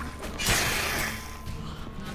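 A sword swings and strikes with a heavy whoosh.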